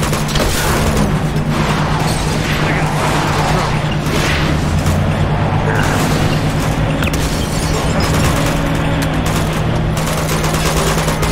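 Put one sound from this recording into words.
A heavy truck engine roars steadily.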